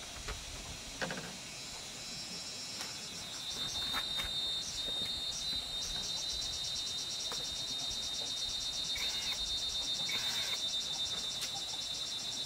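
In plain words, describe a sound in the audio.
Bamboo poles knock and rattle lightly as they are handled.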